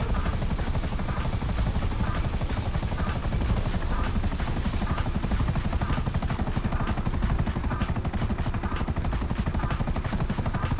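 A helicopter's rotor thumps loudly and steadily as it lifts off and flies.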